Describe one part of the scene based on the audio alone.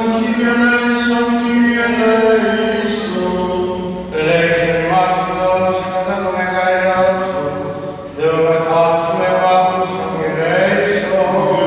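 A man chants in long, steady sung phrases in an echoing hall.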